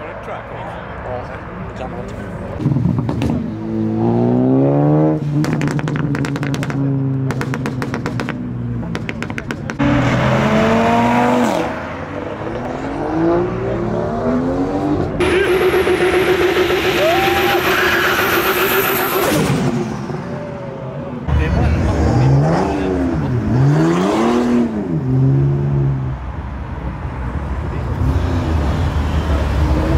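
Car engines rev loudly and roar past.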